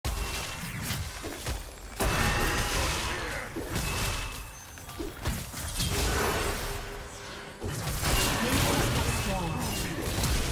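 Game sword slashes and magic blasts crash and whoosh in quick bursts.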